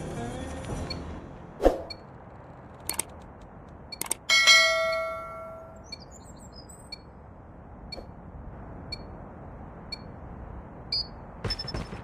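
A countdown timer beeps once a second.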